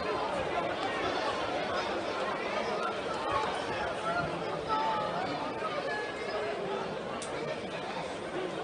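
A crowd chatters and cheers throughout a large echoing arena.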